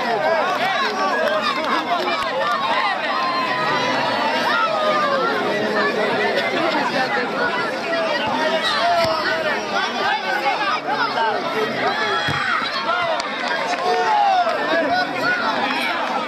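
A large crowd of spectators chatters and shouts steadily outdoors.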